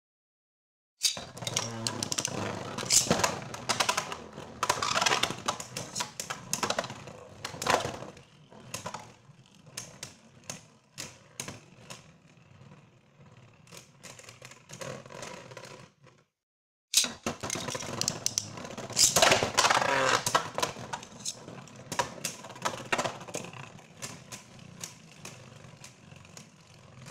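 Spinning tops whir and clatter against each other inside a plastic arena.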